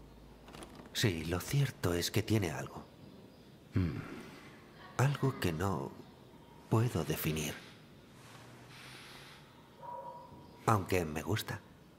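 A young man answers calmly, close by.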